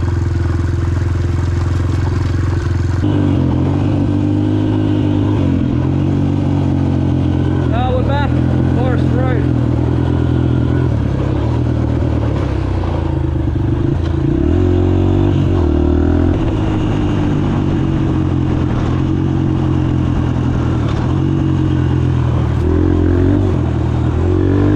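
A dirt bike engine drones and revs up and down close by.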